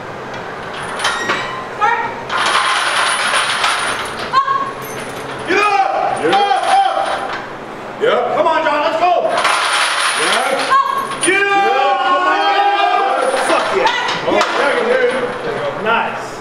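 Several men shout encouragement close by.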